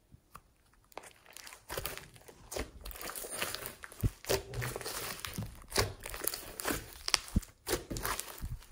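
Hands squish and stretch thick foamy slime, with sticky crackles and pops of air.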